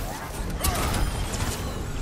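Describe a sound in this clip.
An explosion bursts with a loud blast.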